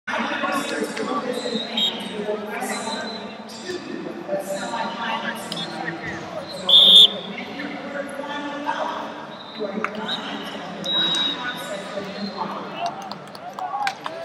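A large crowd murmurs and chatters in a big echoing hall.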